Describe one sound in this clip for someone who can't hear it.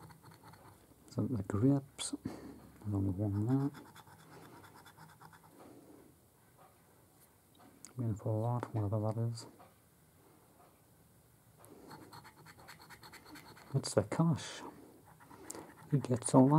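A coin scratches across a card with a dry, rapid rasping.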